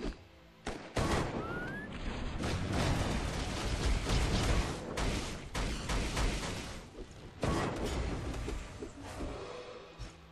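Fight effects whoosh, blast and crash loudly.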